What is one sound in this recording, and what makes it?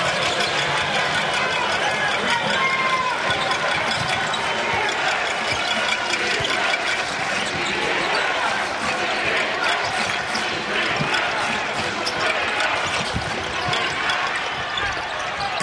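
A crowd roars and cheers throughout in a large echoing arena.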